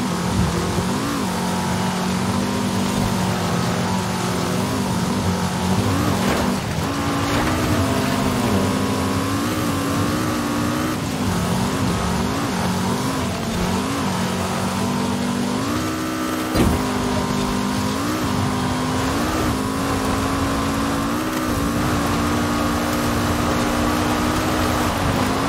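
A car engine roars loudly, its pitch rising and dropping with gear changes.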